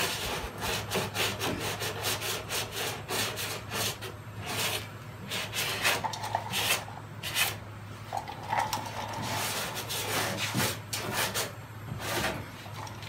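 Sandpaper rasps in quick strokes against a car door.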